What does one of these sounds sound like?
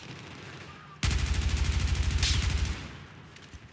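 A rifle fires a rapid burst that echoes through a tunnel.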